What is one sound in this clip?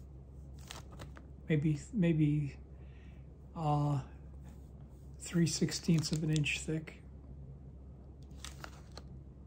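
A plastic sleeve crinkles and rustles as it is handled.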